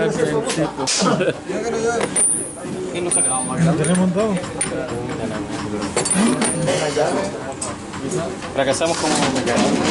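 Metal parts clink and rattle as hands work on a gearbox.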